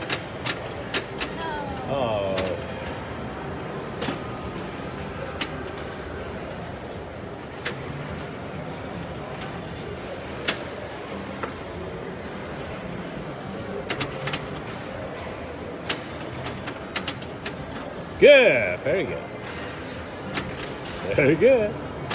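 A pinball machine plays electronic sounds and music.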